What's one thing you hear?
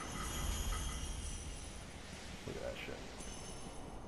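A sword slashes and strikes.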